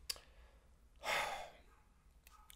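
A man sighs heavily.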